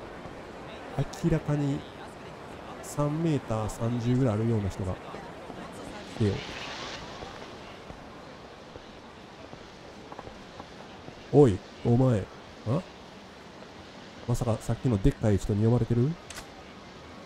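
A second man answers casually in a relaxed voice.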